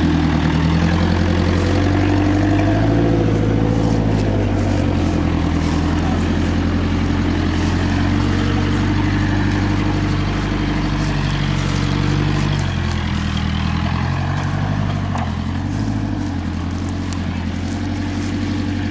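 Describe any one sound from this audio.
Tyres crunch over rough dirt.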